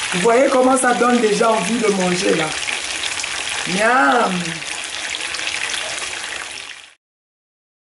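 Food sizzles and crackles in hot oil in a frying pan.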